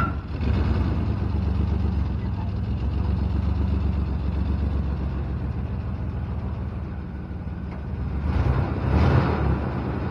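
A pickup truck rolls slowly forward and stops.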